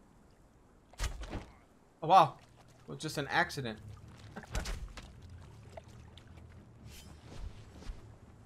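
Water splashes underfoot as someone wades through shallow water.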